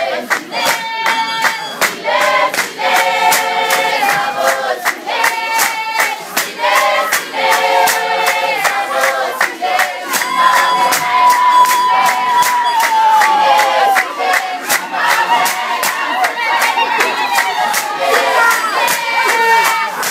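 A group of young women and girls sings loudly in chorus.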